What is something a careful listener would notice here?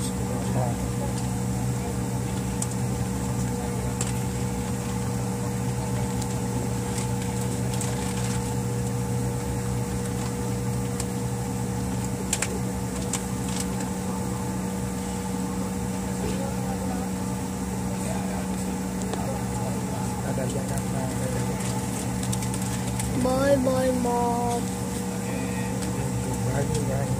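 An airliner's wheels rumble over the runway.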